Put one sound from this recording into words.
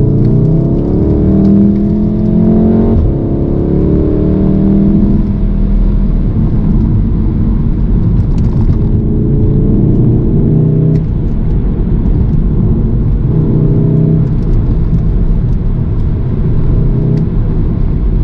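Road noise rumbles steadily inside the car.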